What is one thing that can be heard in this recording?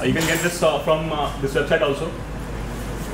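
A man speaks through a microphone in an echoing hall.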